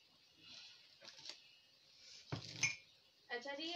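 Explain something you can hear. Plastic items knock and clatter as a hand picks them up.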